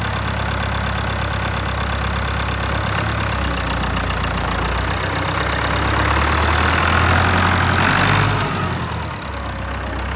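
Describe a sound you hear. An old tractor engine idles with a steady, low chugging rumble close by.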